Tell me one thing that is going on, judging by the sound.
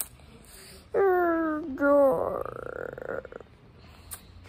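A young girl squeals loudly in a high voice.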